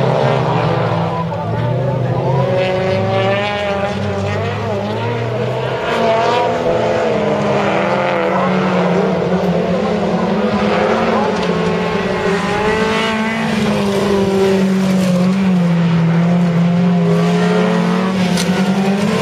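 Racing car engines roar and rev up and down at a distance.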